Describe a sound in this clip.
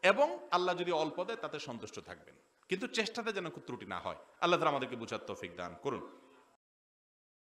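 A middle-aged man preaches forcefully into a microphone.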